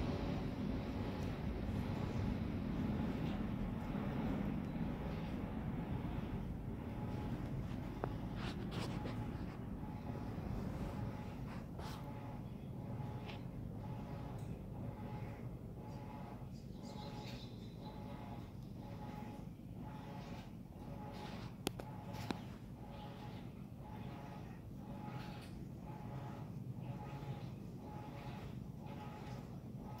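A cat purrs steadily up close.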